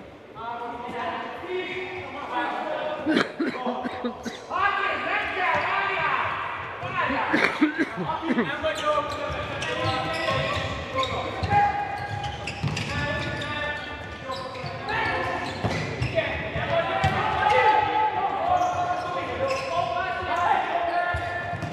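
A ball thuds off a player's foot in a large echoing hall.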